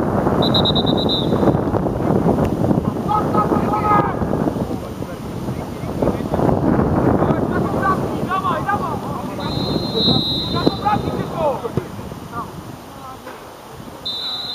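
A referee's whistle blows sharply.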